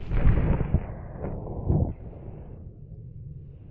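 Fruit splashes into water and bubbles churn.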